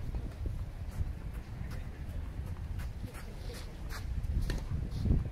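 Tennis rackets strike a ball with sharp pops.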